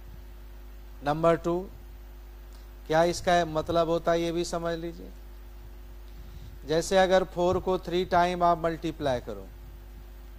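A man speaks calmly into a close microphone, explaining in short bursts.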